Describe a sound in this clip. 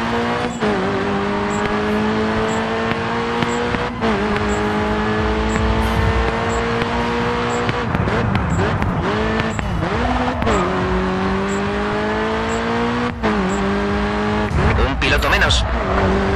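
A car engine revs high and shifts through the gears.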